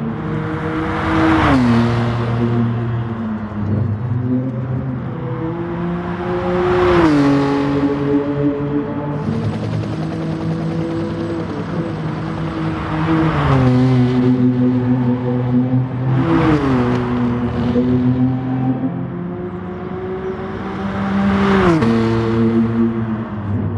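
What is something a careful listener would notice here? A racing car engine roars at high revs, its pitch dropping sharply with each gear shift.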